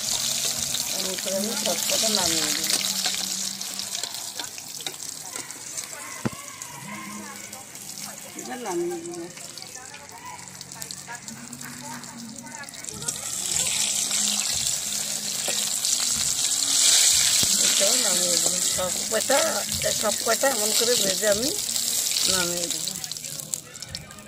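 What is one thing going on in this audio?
Oil sizzles and crackles as fritters fry in a pan.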